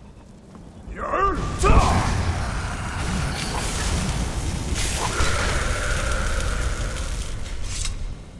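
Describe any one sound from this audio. A magic blast roars and crackles loudly.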